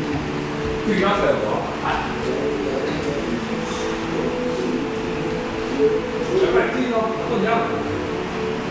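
A man calls out briefly in an echoing hall.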